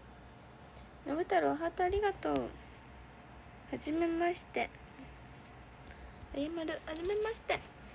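A young woman speaks softly and close to the microphone, in short bursts.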